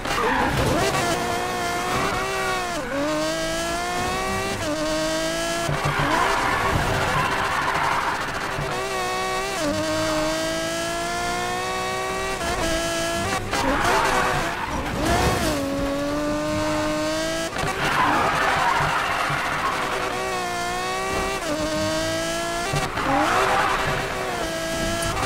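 Tyres screech as a car drifts through bends.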